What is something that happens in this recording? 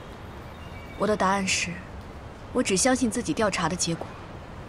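A young woman speaks quietly and earnestly, close by.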